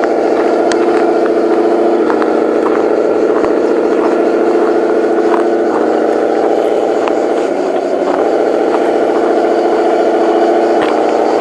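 A small electric motor whines steadily as a toy truck drives.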